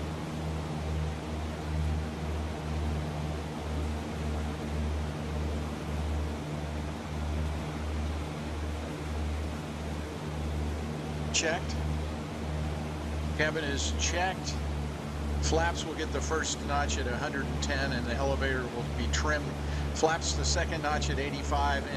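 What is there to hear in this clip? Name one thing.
A light aircraft's engine drones steadily and low.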